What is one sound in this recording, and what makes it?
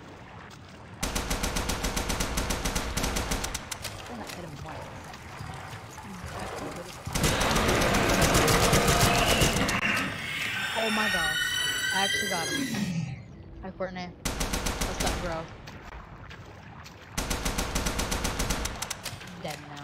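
A rapid-fire gun shoots in quick bursts.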